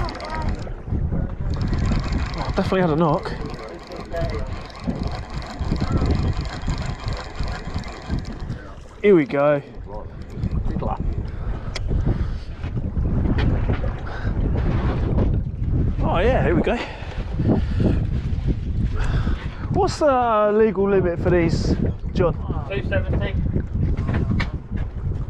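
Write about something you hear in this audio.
Water splashes against a boat.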